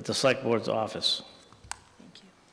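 A middle-aged man speaks into a microphone.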